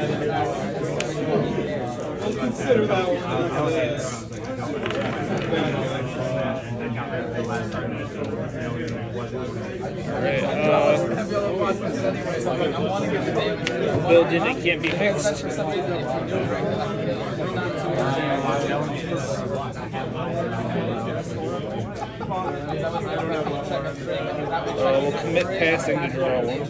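Cards tap and slide on a table.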